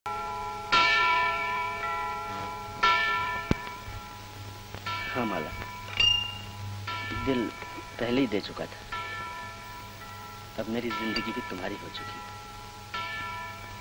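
A clock bell chimes slowly, each stroke ringing on.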